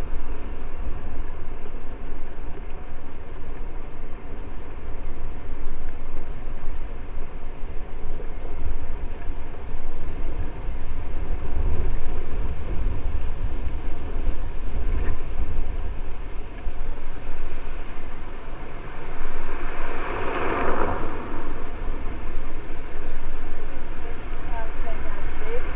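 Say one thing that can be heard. Wind rumbles steadily outdoors against a moving microphone.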